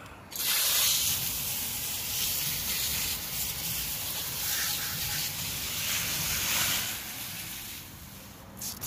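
A jet of water sprays hard against a wheel.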